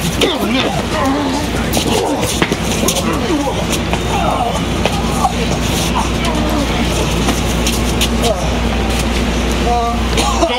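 Bodies and blows thud against a metal van.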